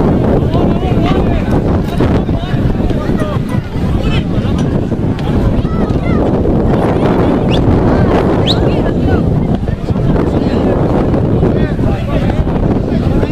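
Spectators chatter and call out nearby, outdoors.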